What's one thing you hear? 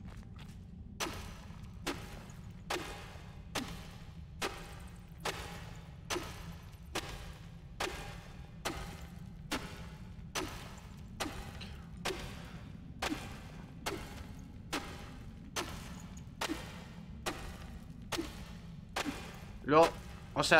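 A pickaxe strikes rock again and again at a steady pace.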